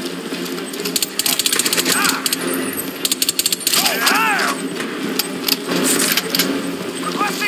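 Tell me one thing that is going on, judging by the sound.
Rapid bursts of gunfire rattle.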